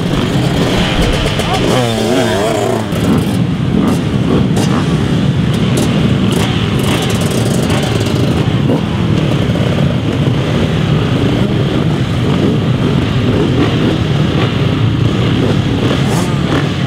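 Many dirt bike engines idle and rumble loudly outdoors.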